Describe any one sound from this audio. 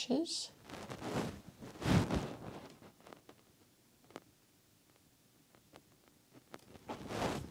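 A paintbrush strokes softly across canvas.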